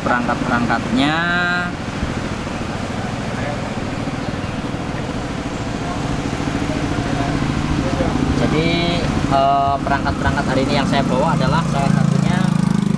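Loud, bass-heavy music booms from large loudspeakers outdoors.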